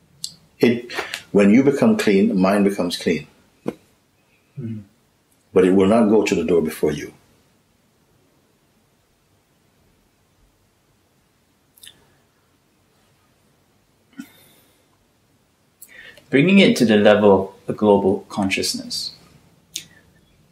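An older man speaks calmly and thoughtfully, close by.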